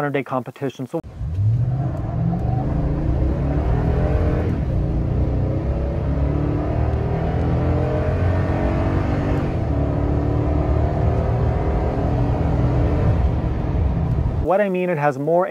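A car engine roars and rises steadily in pitch as the car accelerates.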